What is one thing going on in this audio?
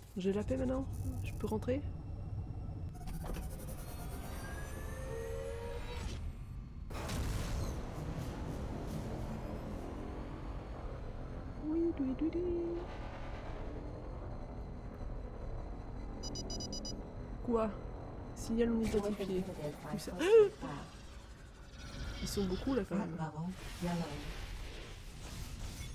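A spaceship engine hums with a low, steady roar.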